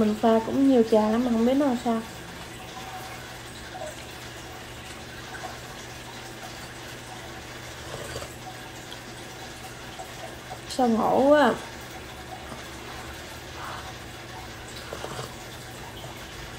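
A woman sips a drink and swallows.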